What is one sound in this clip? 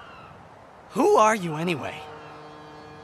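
A young man asks a short question in surprise, close by.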